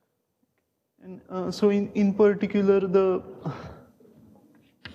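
A man speaks calmly in an echoing room.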